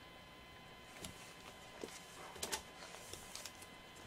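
A plastic page sleeve rustles as a page turns over.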